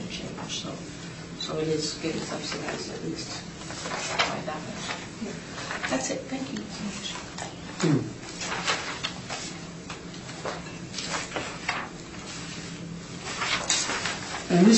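A man speaks calmly, heard from across a room.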